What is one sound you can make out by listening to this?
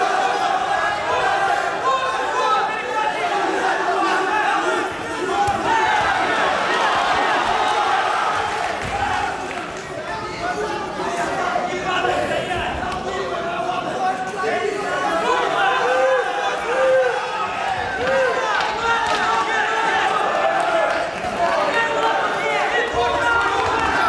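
Punches thud against bodies and gloves.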